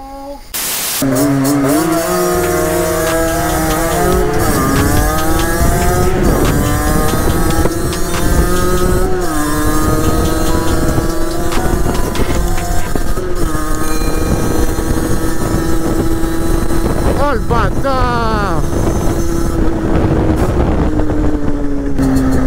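A motorcycle engine roars close by, revving up and down as it rides.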